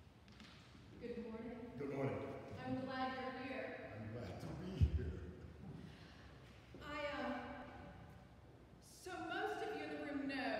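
A woman sings into a microphone in a large echoing hall.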